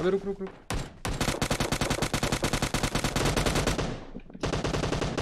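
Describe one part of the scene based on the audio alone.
Rapid gunfire rattles in a quick burst.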